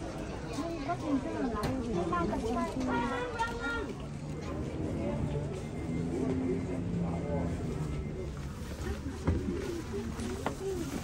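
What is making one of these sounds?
A crowd of adults chatters nearby outdoors.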